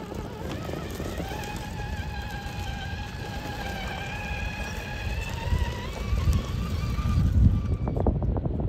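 A small electric motor whines steadily, its pitch shifting slightly.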